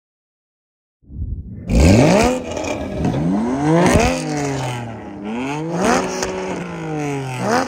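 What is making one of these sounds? A sports car engine revs loudly and repeatedly.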